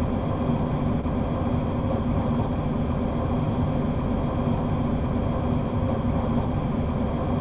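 A train engine hums and rumbles steadily.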